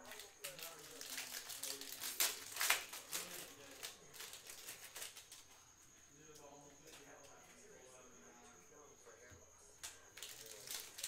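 Card packs crinkle and rustle as they are handled.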